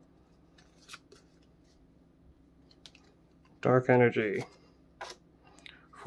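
Trading cards slide and flick softly against each other.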